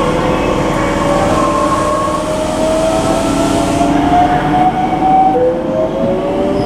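A train rumbles and rattles along the track.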